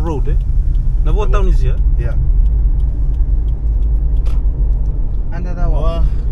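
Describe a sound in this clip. A car engine and tyres rumble steadily from inside the car.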